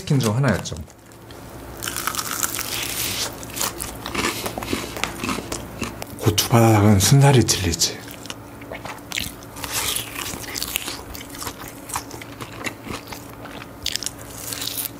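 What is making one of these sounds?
A young man chews crunchy fried food loudly and close up.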